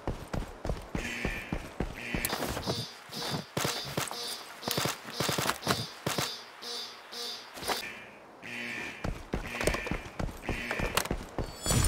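Short electronic beeps repeat rapidly.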